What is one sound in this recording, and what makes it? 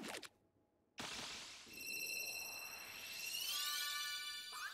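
A bright shimmering chime swells.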